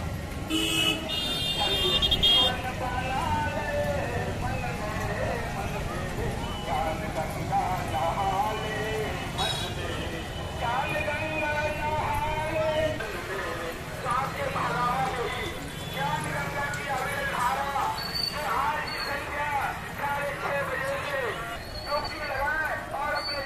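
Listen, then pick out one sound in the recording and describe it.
A large crowd of women sings and chants together outdoors.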